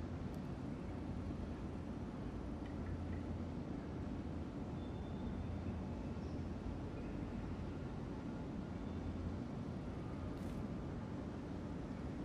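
A ceiling fan hums steadily.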